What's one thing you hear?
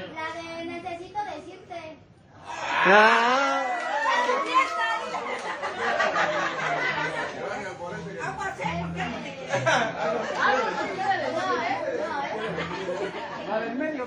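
Men and women at a table chat and talk over one another.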